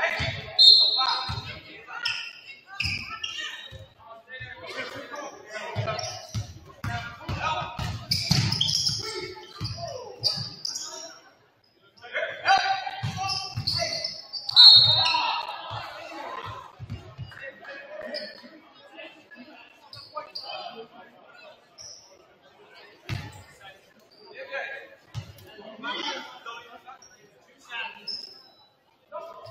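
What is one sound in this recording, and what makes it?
Young players and spectators call out and cheer in a large echoing gym.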